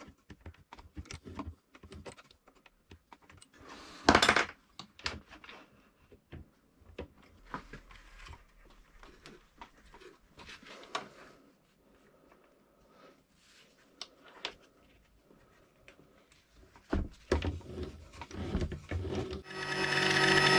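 Wooden parts knock and clatter as they are fitted and clamped by hand.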